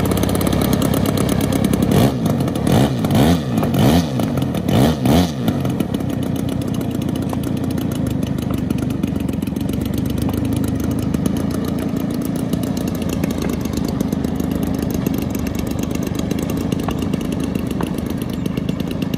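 A small model airplane engine buzzes steadily.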